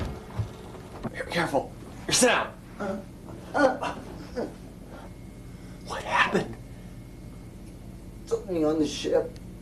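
A young man speaks in short, tense bursts, close by.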